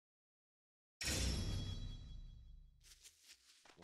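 A deep booming crash rings out and slowly fades.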